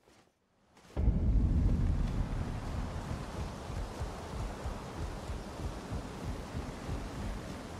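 Footsteps thud steadily on wooden planks.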